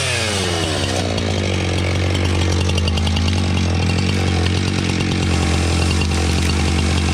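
A chainsaw idles with a steady low rattle.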